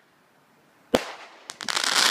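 A firework bursts with a loud bang overhead.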